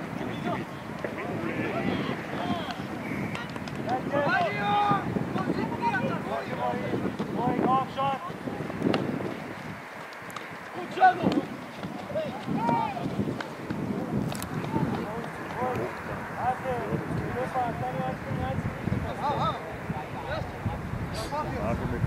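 Teenage boys shout to each other outdoors on an open pitch.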